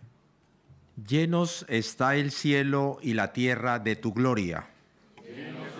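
A man reads out through a microphone.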